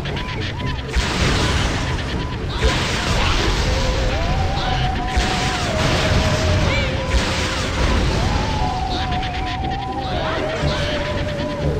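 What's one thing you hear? Bursts of spray hiss loudly from a vehicle's nozzle.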